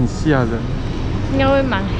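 A suitcase rolls along on its wheels nearby.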